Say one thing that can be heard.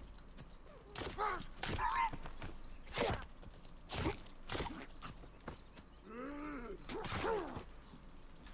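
An axe strikes a body with heavy thuds.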